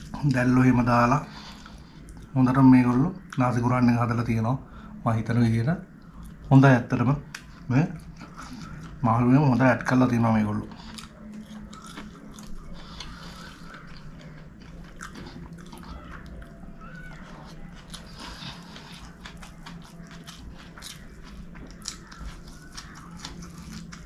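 Fingers squish and rustle through rice.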